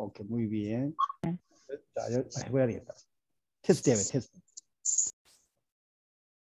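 A middle-aged man speaks calmly through a microphone on an online call.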